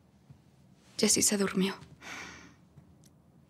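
A young woman speaks softly from across a room.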